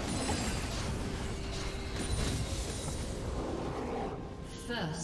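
Fiery spell effects crackle and burst in a game.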